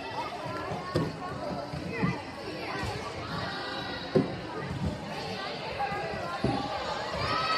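A volleyball is struck by hands and arms in a large echoing gym.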